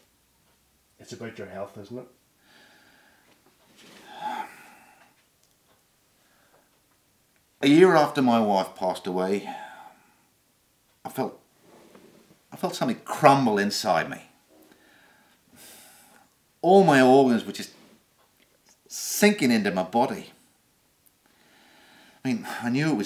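A middle-aged man speaks calmly and thoughtfully, close by, in bursts with pauses.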